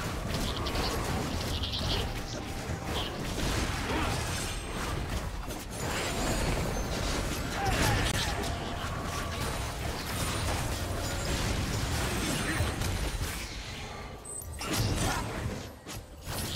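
Magic spells whoosh and blast in a fantasy battle game.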